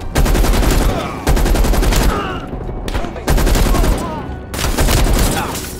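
An automatic gun fires rapid bursts of shots.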